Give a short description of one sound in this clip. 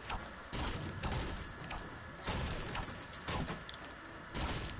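A pickaxe swings and strikes with sharp knocks.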